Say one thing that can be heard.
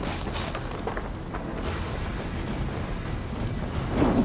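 Fires crackle and roar nearby.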